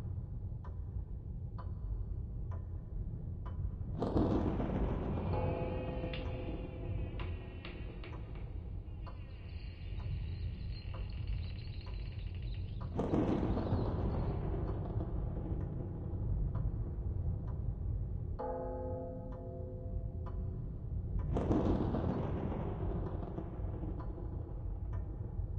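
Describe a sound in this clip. Phone keyboard keys click softly as someone types.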